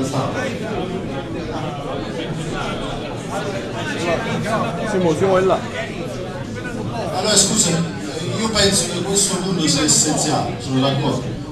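A man nearby talks with animation.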